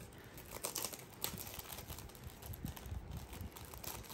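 Plastic wrapping crinkles as it is peeled off.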